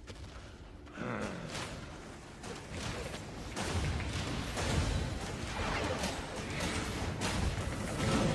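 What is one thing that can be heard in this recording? Game spell effects whoosh and crackle in a fight.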